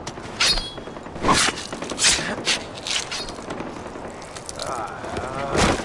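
A knife cuts wetly through flesh.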